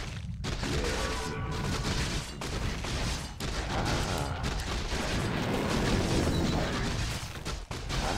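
Swords clash and spells burst in a fast fight.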